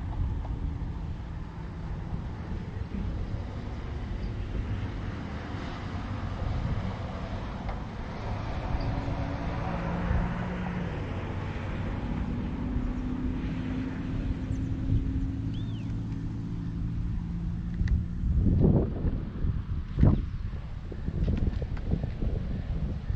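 Wind gusts across the open air outdoors.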